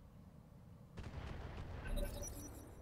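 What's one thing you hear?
Explosions boom and crackle in a game.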